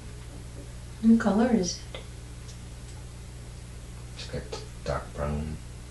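A middle-aged woman snores loudly nearby.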